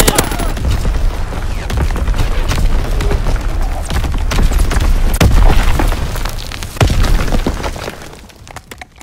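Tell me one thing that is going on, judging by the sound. A heavy machine gun fires in rapid, booming bursts.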